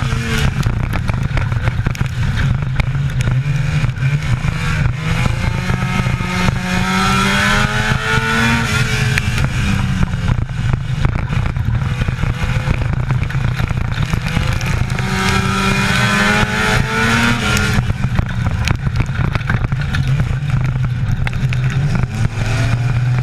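A race car engine roars loudly up close, its pitch rising and falling as it accelerates and slows.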